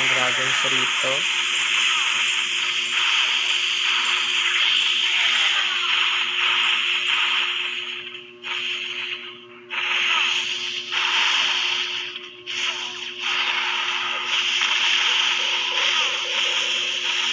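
Fire roars in steady bursts as dragons breathe flames.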